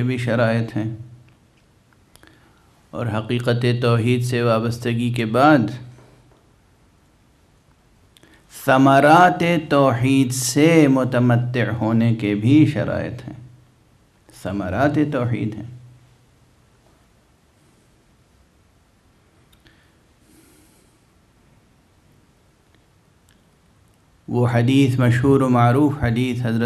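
A middle-aged man speaks solemnly into a microphone, with pauses between phrases.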